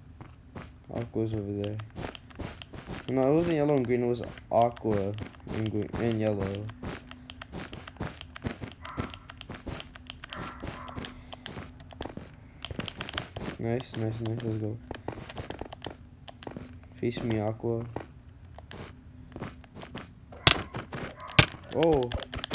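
Game blocks are placed with quick, soft clicks.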